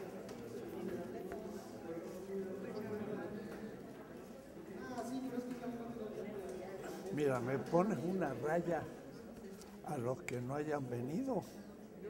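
An elderly man talks in an echoing room, heard from a distance.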